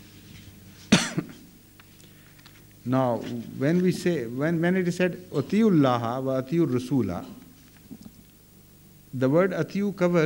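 Paper sheets rustle and shuffle.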